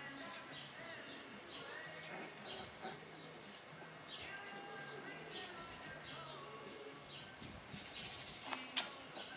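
Small paws scuffle and rustle in grass.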